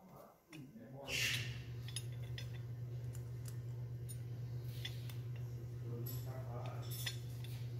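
Small metal parts click and tap as hands work on a motor.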